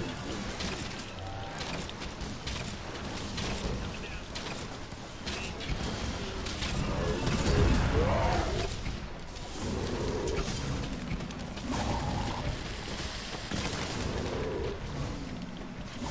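Fiery blasts burst with deep booms.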